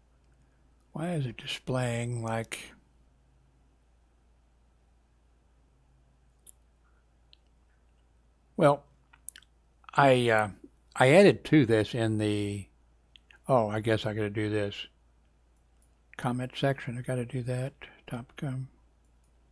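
A middle-aged man speaks calmly into a headset microphone, in short bursts with pauses.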